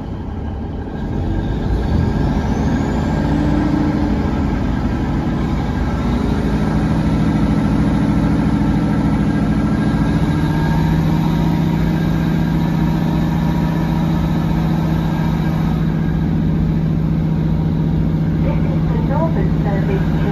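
A train rumbles past close by, its engine humming and rising in pitch.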